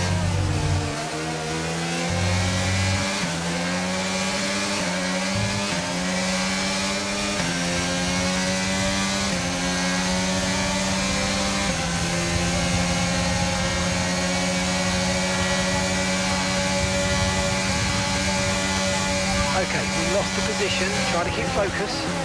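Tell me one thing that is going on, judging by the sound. A racing car engine screams, rising in pitch through each gear and dropping with each shift.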